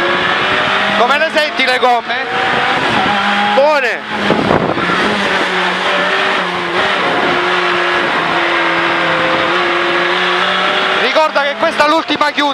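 Tyres squeal sharply through corners.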